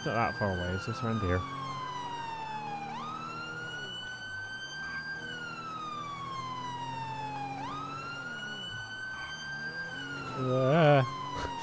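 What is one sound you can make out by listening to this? A police siren wails, rising and falling slowly.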